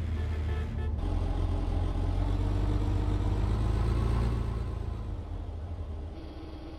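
A car engine rumbles and idles low.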